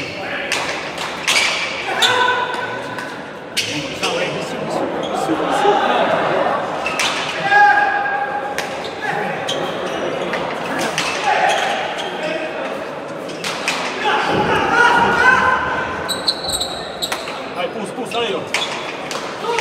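A hard ball smacks against a wall and echoes around a large hall.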